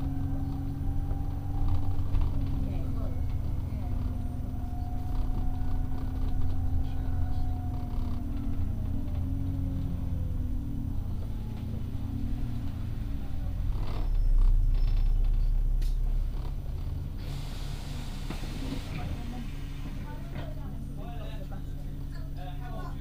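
A bus engine hums steadily from inside, with a gear whine that slowly falls in pitch.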